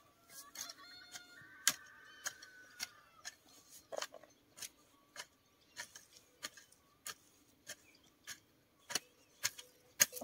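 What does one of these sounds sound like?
A hoe chops rhythmically into soft soil.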